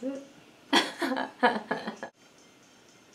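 A young woman laughs brightly close by.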